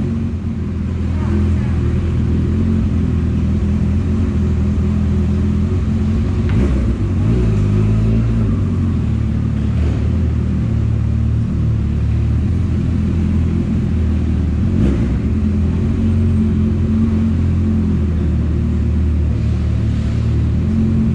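A motorcycle engine runs and revs steadily close by, echoing in a large enclosed space.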